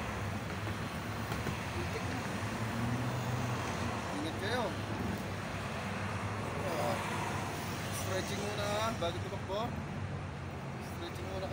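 Traffic rumbles steadily nearby outdoors.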